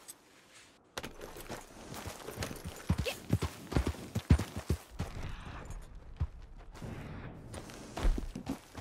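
A horse's hooves clop on stony ground.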